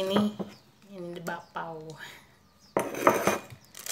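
A plate clinks on a table.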